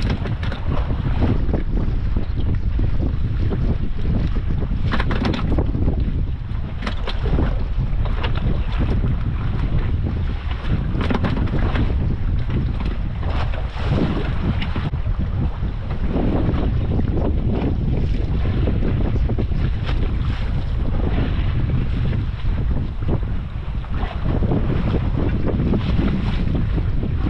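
Waves slap against a small boat's hull.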